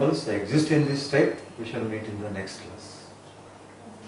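A middle-aged man speaks calmly nearby, as if teaching.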